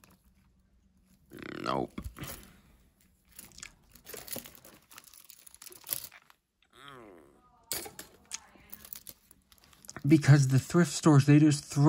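Metal jewellery clinks and jingles as hands sort through it.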